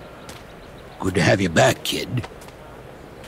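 A young man speaks briefly and tensely.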